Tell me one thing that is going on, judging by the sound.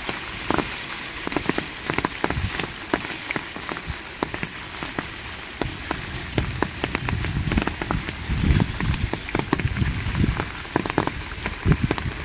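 Footsteps splash on a wet road.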